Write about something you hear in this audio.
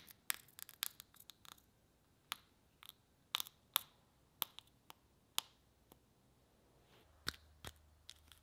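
Sharp clicks and taps of metal parts handled close by.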